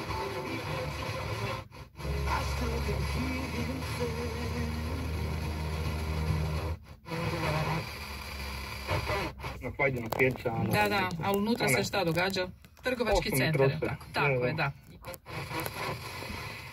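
A car radio hisses and crackles as it is tuned between stations, cutting out briefly at each step.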